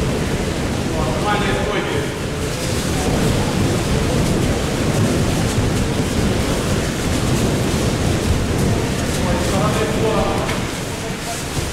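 A man calls out briefly.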